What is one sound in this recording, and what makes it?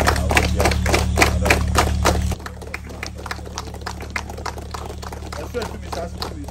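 A group of men chant together outdoors.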